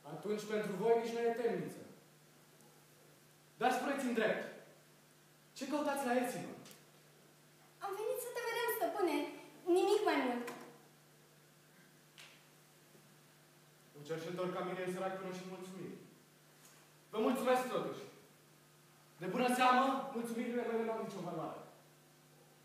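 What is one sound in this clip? A young woman speaks clearly in short, theatrical lines, heard in a large hall.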